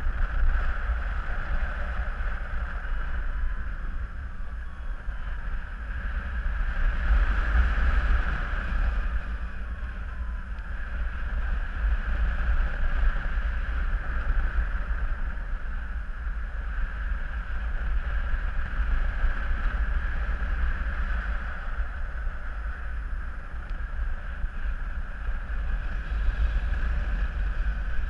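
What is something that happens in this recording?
Wind rushes steadily past, rising and falling in gusts.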